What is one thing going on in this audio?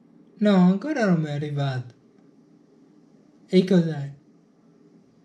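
A man talks on a phone close by, in short calm phrases.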